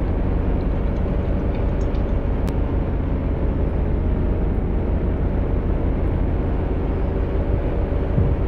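Car engines idle with a low, steady rumble.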